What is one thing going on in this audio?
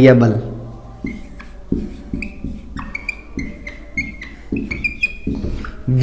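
A marker squeaks across a whiteboard.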